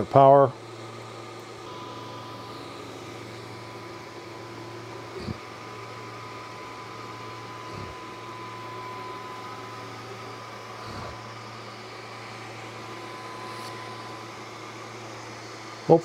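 A laser engraver hums steadily with a faint high whine.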